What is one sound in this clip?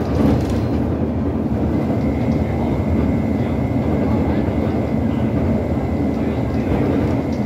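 Tyres hum and rattle on the road surface.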